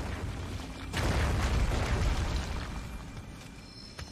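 A ghostly creature shrieks and rushes past with a loud whoosh.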